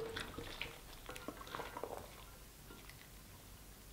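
A woman sips liquid through a straw close to a microphone.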